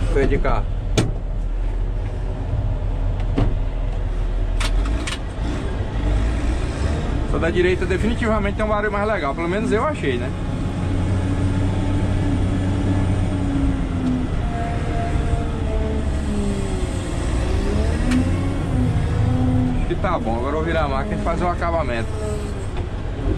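A heavy diesel engine rumbles steadily up close.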